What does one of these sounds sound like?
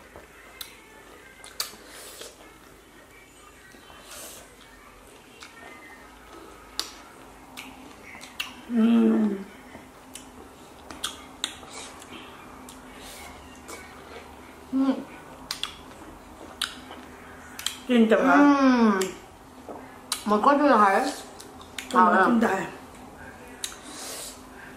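Chewing and lip smacking sound close by.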